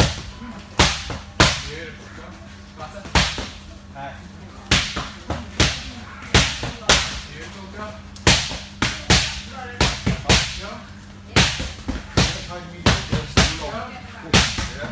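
Boxing gloves thump against pads and headgear in sharp, irregular punches.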